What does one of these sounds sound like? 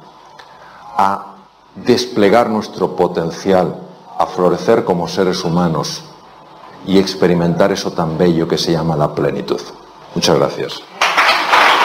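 A man speaks calmly and with emphasis into a microphone.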